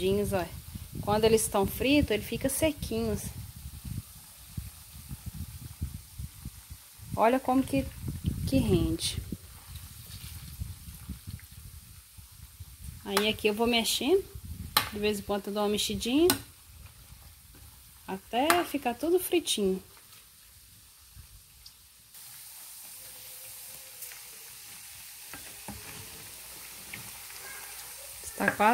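Fat sizzles and crackles in a hot pan.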